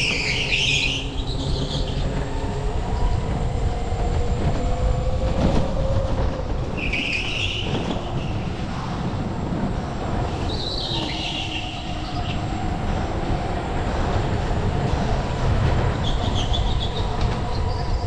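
A go-kart engine buzzes and whines steadily up close.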